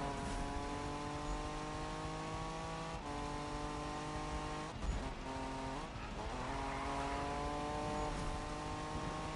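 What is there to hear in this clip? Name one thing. A car engine roars at high speed, its pitch climbing and dropping between gear shifts.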